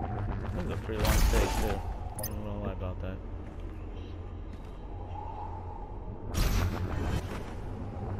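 Short rushing whooshes burst out as a game figure dashes forward.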